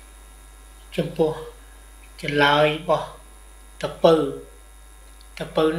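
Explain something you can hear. An elderly man speaks slowly and calmly up close.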